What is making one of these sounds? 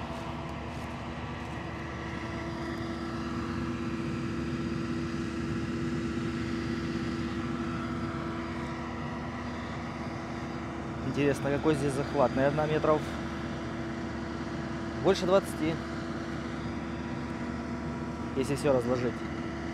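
A tractor engine hums steadily nearby.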